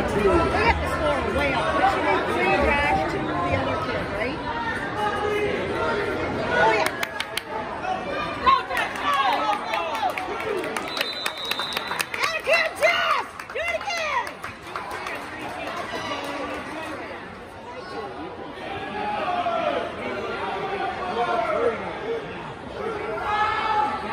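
A crowd of spectators shouts and cheers loudly in a large echoing gym.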